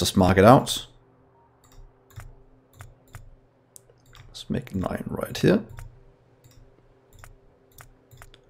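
Soft game interface clicks tick now and then.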